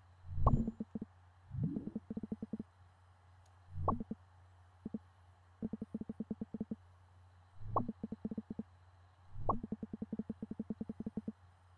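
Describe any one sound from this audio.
Rapid electronic blips chatter in short bursts.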